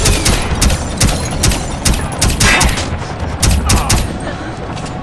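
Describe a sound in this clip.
Silenced gunshots thud in quick bursts.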